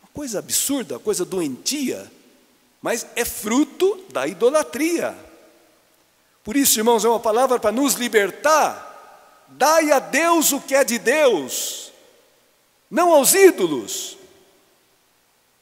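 A middle-aged man preaches with animation through a microphone.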